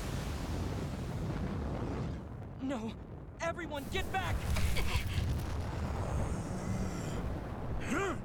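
Flames roar and whoosh loudly.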